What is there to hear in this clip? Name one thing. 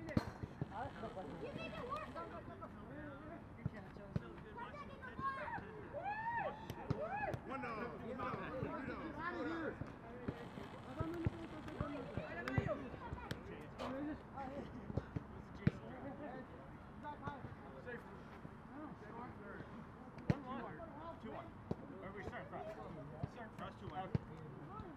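Young men call out and talk to each other outdoors.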